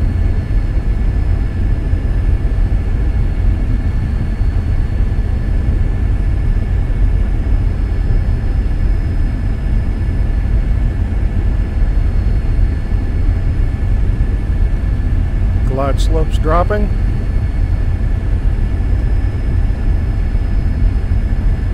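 An aircraft engine drones steadily and loudly.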